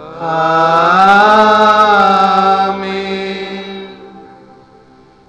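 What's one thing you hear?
An elderly man sings a long chanted phrase through a microphone.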